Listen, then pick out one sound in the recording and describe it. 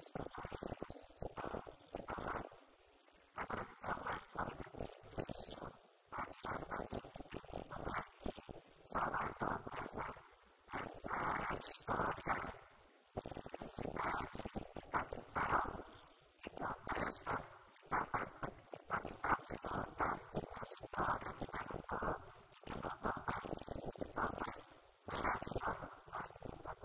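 A woman speaks with animation into a microphone, heard through a loudspeaker in a large echoing hall.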